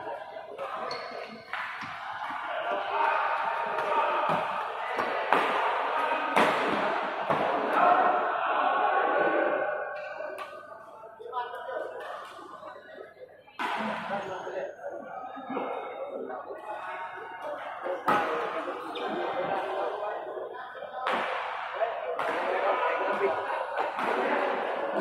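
Young men talk and call out across a large echoing hall.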